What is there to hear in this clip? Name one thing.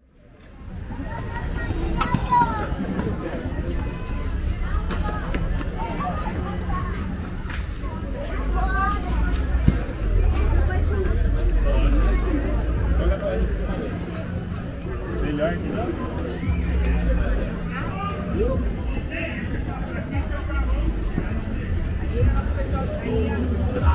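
A crowd of men, women and children chatters all around outdoors.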